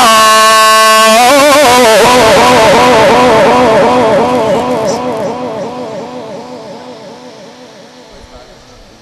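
A man chants with vibrato through a microphone and loudspeakers, echoing and slowly fading.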